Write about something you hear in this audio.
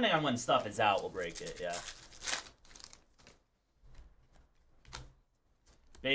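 A foil card pack crinkles and rustles as hands tear it open.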